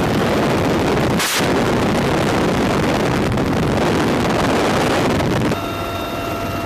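Wind rushes loudly past an open helicopter door.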